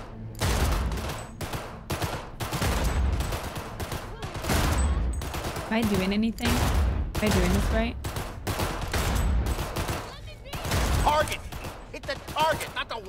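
Pistol shots fire rapidly, one after another, with a booming echo.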